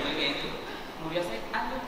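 A young man speaks through a microphone.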